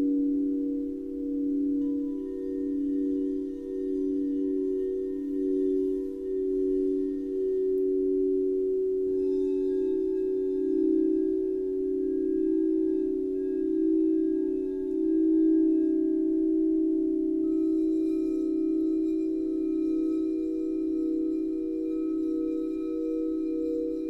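Crystal singing bowls ring with steady, overlapping humming tones that slowly swell and fade.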